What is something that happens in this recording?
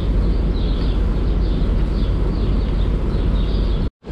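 A broom scrapes feed along a concrete floor.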